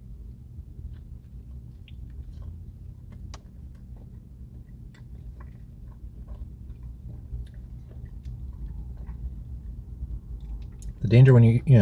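A man chews food.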